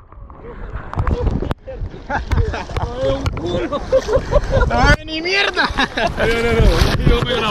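Water splashes around swimmers.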